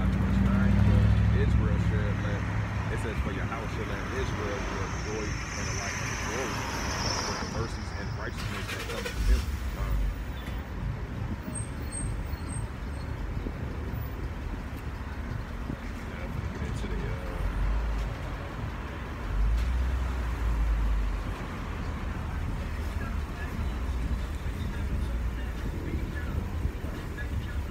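Traffic hums steadily on a nearby street.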